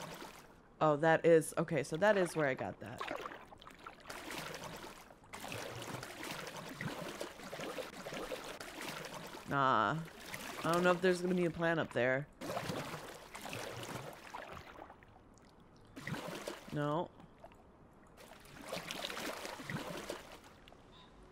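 Water splashes gently against a moving kayak.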